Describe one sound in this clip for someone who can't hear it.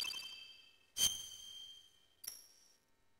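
A bright electronic chime rings out once.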